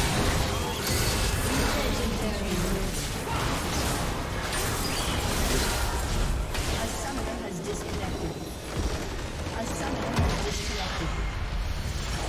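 Game spells and weapon effects clash and burst in a fast battle.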